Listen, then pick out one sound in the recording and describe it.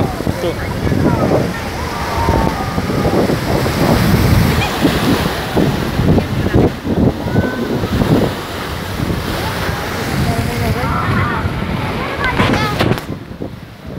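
Waves crash and wash over rocks close by.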